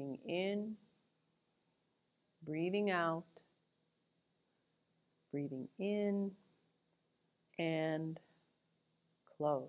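A middle-aged woman speaks calmly in short phrases, giving instructions close to a microphone.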